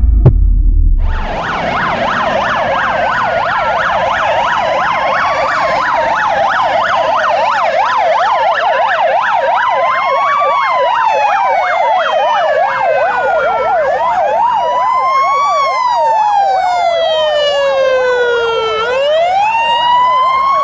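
A fire engine siren yelps rapidly.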